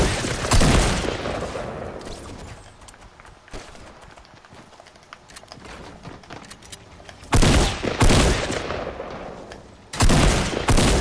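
Gunshots fire in loud, sudden bursts.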